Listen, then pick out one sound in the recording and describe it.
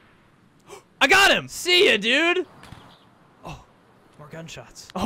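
A young man laughs and talks excitedly into a close microphone.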